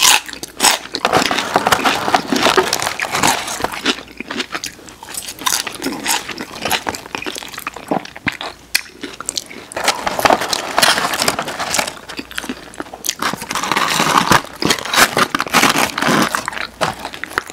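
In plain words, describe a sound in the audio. Paper wrappers crinkle as hands pick up food.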